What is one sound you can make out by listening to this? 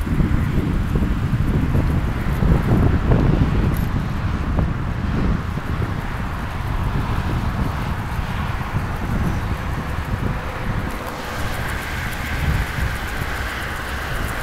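Traffic rushes by on a highway.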